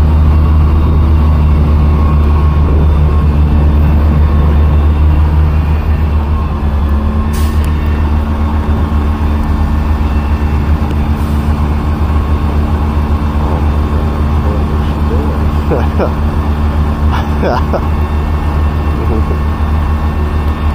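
A crane truck's diesel engine rumbles steadily nearby.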